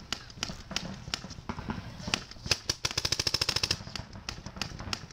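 Paintball guns fire in quick popping bursts nearby.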